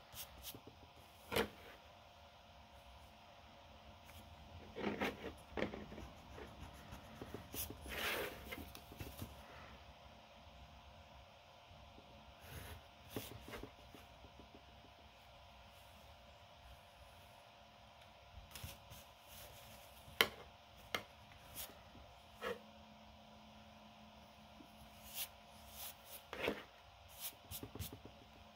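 Hands brush and rub across paper.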